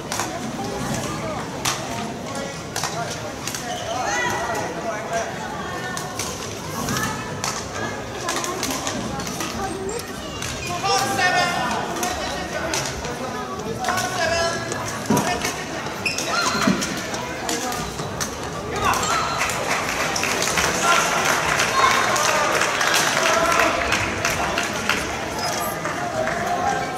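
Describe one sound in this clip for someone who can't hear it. Rackets strike a shuttlecock with sharp pops in a large echoing hall.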